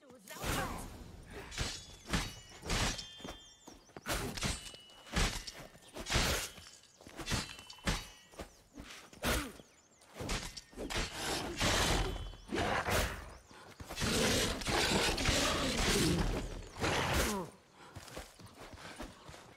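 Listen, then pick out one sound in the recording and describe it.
Swords swing and strike in quick bursts.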